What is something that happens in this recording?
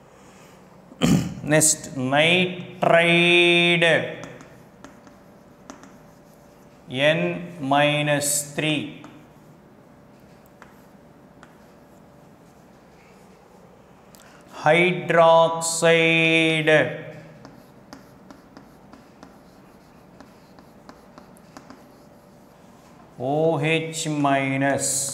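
A man speaks slowly and clearly in a room, pausing often between phrases.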